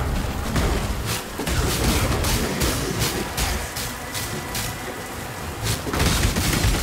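Magic spells crackle and burst in quick, sharp bursts.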